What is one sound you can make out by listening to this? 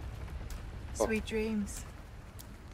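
A woman speaks softly and calmly.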